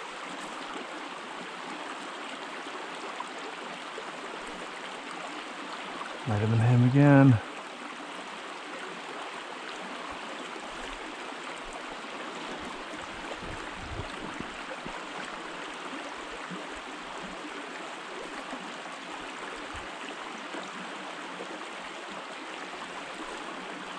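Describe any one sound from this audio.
A shallow stream babbles steadily over rocks.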